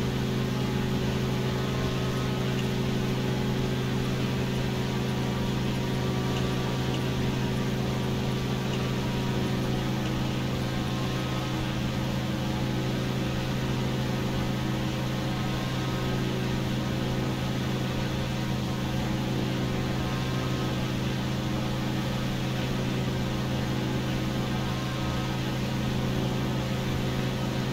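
A small propeller plane's engine drones steadily inside the cockpit.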